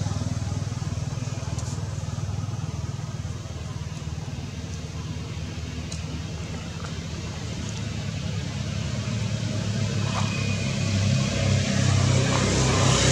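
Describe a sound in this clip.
Leaves rustle as a young monkey climbs among branches.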